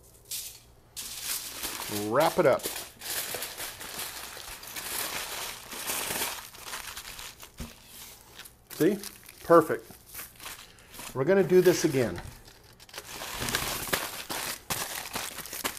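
Paper crinkles and rustles as it is folded around meat.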